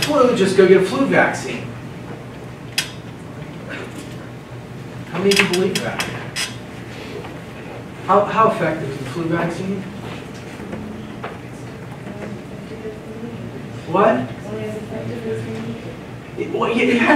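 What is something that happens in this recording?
A man lectures with animation in a large echoing room, heard from a distance.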